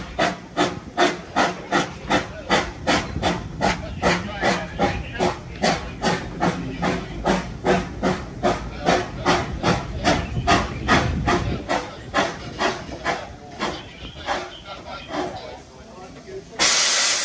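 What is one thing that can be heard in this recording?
A steam locomotive chuffs in a fast, steady rhythm that slows and fades.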